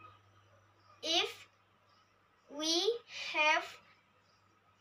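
A young girl speaks close by in short bursts.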